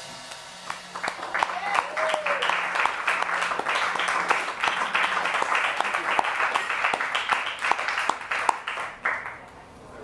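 An audience claps and cheers in a room.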